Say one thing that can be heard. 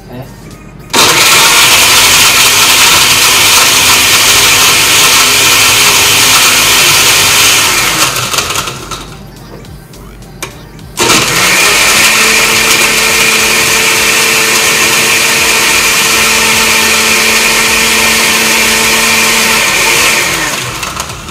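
A blender whirs loudly in two bursts, starting and stopping abruptly.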